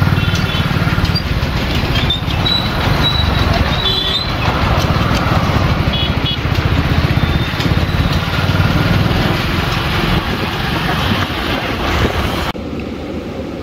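Road traffic rumbles past outdoors.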